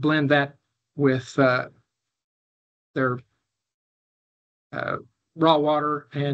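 An older man speaks calmly in short phrases over an online call.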